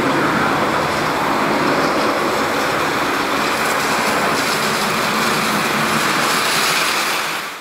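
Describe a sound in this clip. A jet engine roars loudly as an airliner takes off.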